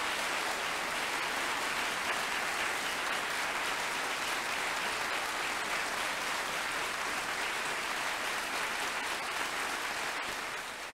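An audience applauds loudly and steadily in a large hall.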